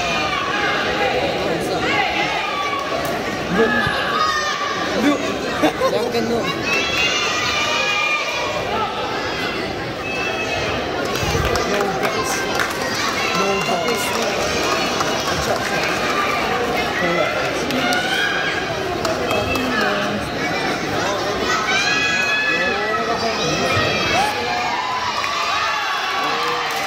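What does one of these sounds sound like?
Young children cheer in high voices.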